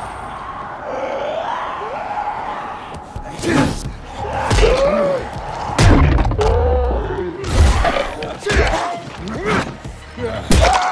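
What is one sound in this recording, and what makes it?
Men groan and snarl hoarsely nearby.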